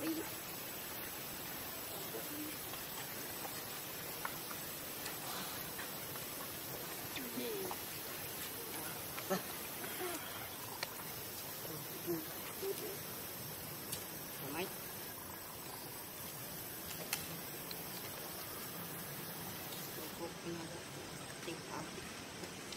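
A baby monkey whimpers and squeaks softly now and then.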